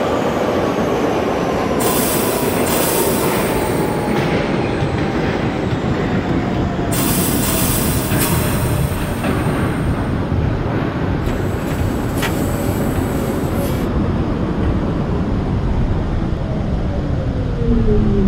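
A train's motor whines, sliding slowly down in pitch.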